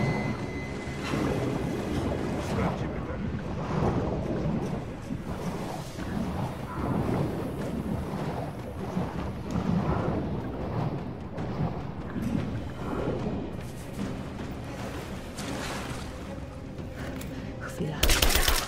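Explosions boom and rumble overhead.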